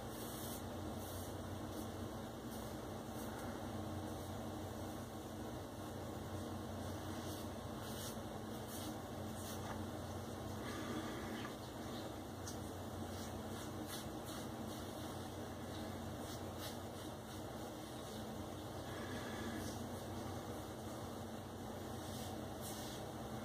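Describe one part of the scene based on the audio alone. A razor scrapes in short strokes across a shaved scalp, close by.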